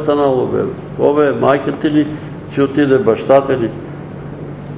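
An elderly man speaks calmly, slightly distant in a room with some echo.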